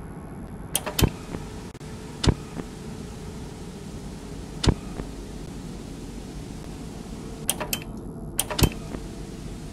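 Sharp electronic clicks sound as a monitor switches channels.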